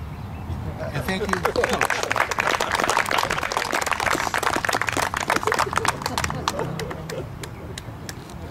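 People clap and applaud.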